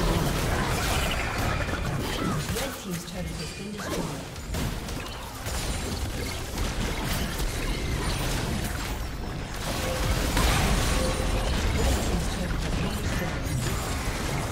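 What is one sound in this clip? Spell blasts and impacts crackle and boom in a fierce game battle.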